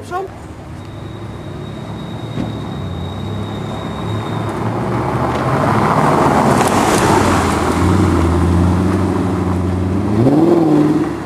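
A sports car engine rumbles as the car drives slowly closer.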